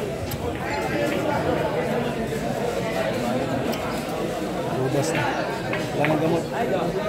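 Billiard balls click together.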